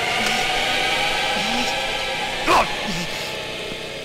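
A man shouts angrily up close.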